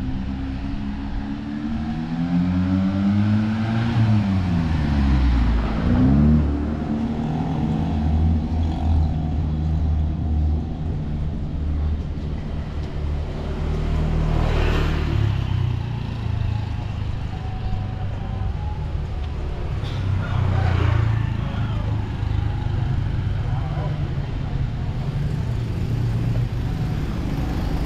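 A motorbike engine rumbles steadily up close.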